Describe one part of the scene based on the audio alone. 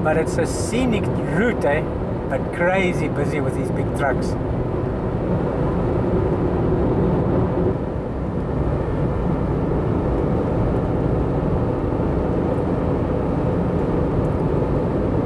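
Tyres hum steadily on a road from inside a moving car.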